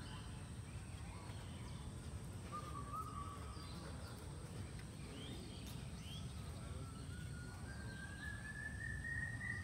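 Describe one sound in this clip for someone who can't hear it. Footsteps thud softly on grass nearby.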